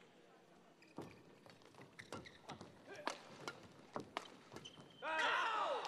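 Rackets strike a shuttlecock in a quick rally.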